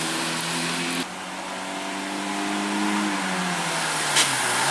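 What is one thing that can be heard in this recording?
A rally car engine drones and rises in pitch as the car approaches.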